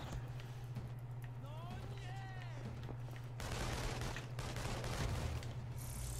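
A video game's fight sounds crackle and whoosh.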